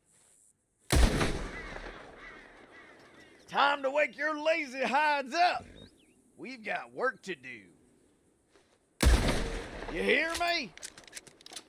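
A shotgun fires loud, echoing blasts.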